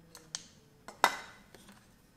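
A small metal piece taps against wood.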